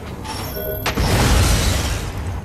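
A large burst explodes with a deep boom.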